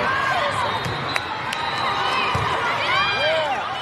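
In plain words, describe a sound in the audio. A volleyball thumps off a player's arms.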